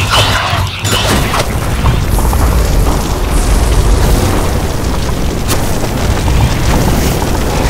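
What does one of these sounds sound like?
A huge fireball explodes with a deep rumble.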